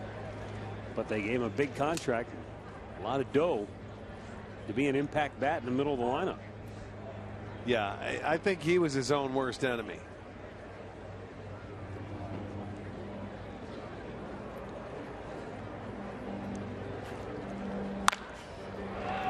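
A crowd murmurs in an open-air ballpark.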